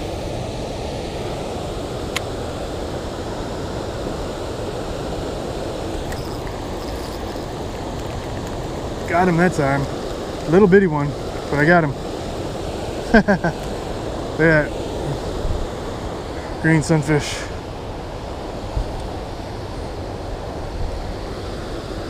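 Water rushes steadily over a weir nearby.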